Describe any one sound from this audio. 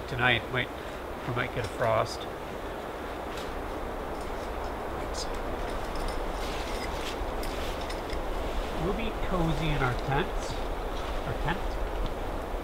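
A man speaks calmly nearby outdoors.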